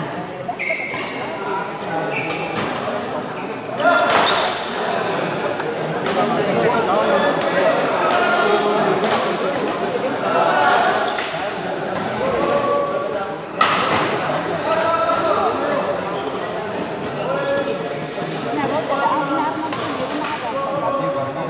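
A crowd of men chatters and calls out in an echoing hall.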